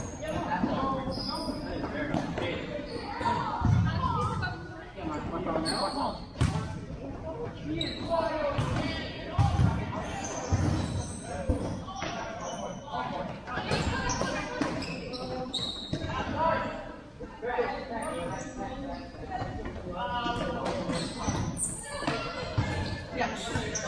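Children shout and call out to each other in a large echoing hall.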